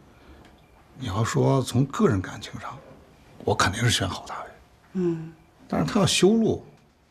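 A middle-aged man speaks slowly and calmly, close by.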